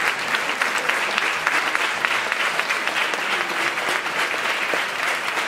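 A crowd claps along rhythmically in a large echoing hall.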